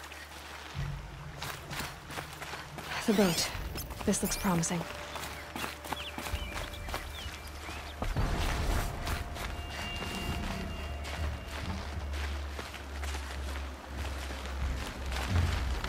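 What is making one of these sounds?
Footsteps crunch on dry ground.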